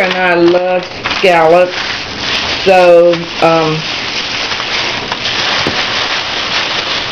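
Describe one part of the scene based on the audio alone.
Paper bags crinkle and rustle.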